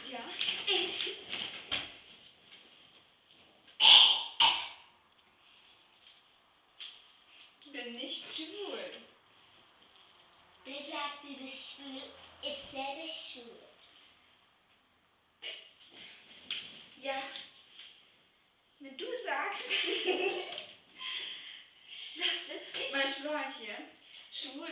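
Young women talk with animation nearby.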